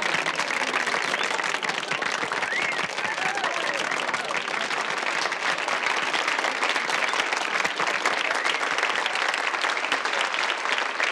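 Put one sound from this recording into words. A crowd applauds and cheers loudly indoors.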